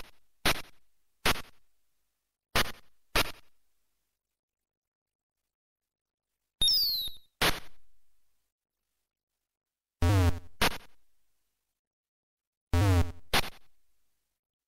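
Sharp electronic punching sounds hit in quick pairs.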